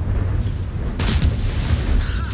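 A shell explodes with a heavy blast.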